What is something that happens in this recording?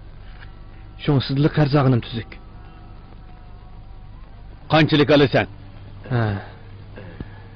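A man speaks in short, calm phrases nearby.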